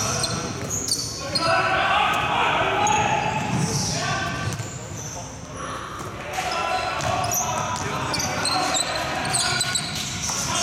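A basketball bounces on the floor in a large echoing hall.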